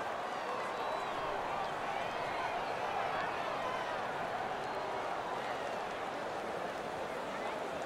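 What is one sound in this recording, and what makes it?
A large stadium crowd cheers and roars steadily.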